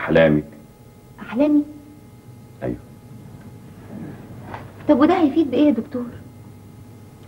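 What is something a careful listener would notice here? A woman speaks with animation, close by.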